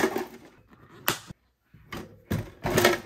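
A plastic lid snaps shut.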